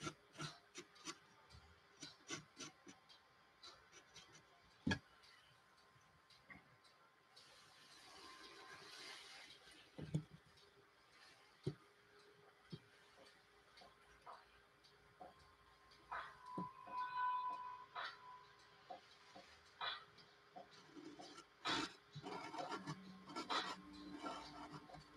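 A pencil scratches and taps lightly on a canvas.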